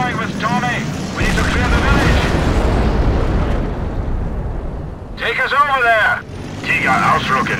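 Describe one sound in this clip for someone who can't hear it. A tank engine rumbles and clanks.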